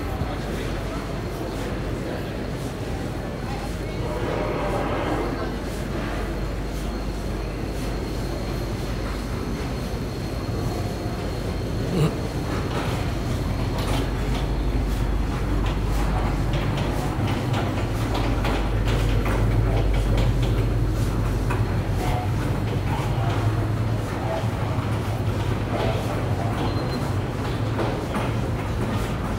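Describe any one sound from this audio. A low hum of ventilation fills a large, echoing indoor hall.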